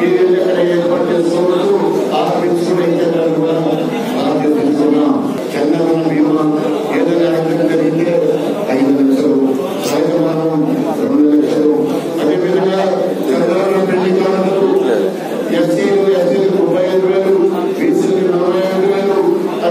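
A man speaks forcefully through a microphone and loudspeakers in an echoing hall.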